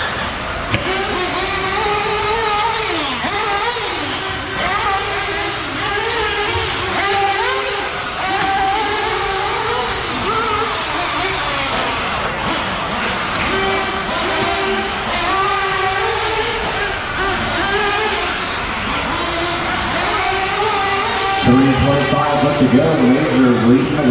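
Small electric model cars whine and rev as they race, echoing in a large hall.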